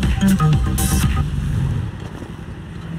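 A motorcycle engine idles and revs.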